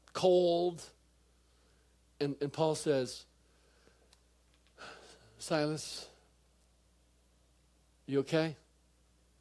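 A middle-aged man speaks calmly into a microphone in short, paused phrases.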